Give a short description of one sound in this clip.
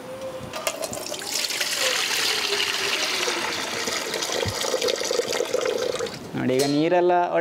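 Water pours out in a steady stream and splashes below.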